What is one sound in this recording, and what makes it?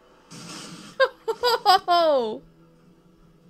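A young man exclaims loudly in surprise.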